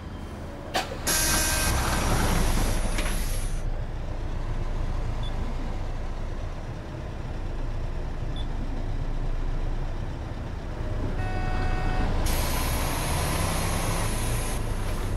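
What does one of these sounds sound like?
Bus doors open and close with a loud hiss of air.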